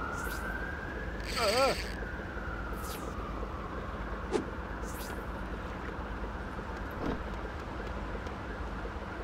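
Water laps gently against a wooden pier.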